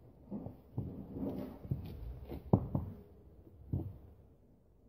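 A horse's hooves thud on hard ground as it walks.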